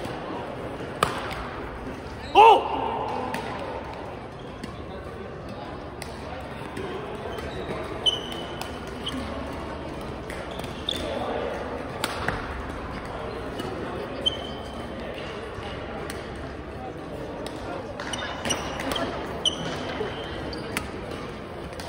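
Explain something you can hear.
A shuttlecock is struck sharply by a racket again and again.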